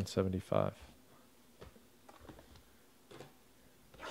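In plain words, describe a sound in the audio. A cardboard box is set down on a table with a light tap.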